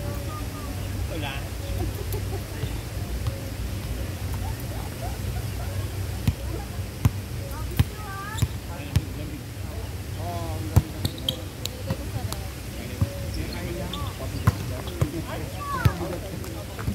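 A volleyball thumps off players' hands and arms now and then.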